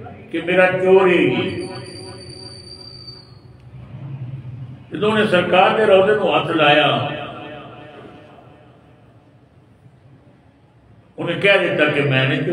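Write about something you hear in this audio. An elderly man speaks with feeling into a microphone, in phrases with long pauses.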